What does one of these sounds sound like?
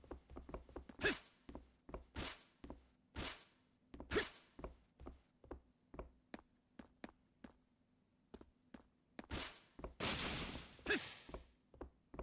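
A weapon swishes through the air in hard swings.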